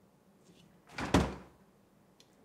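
A fridge door thuds open close by.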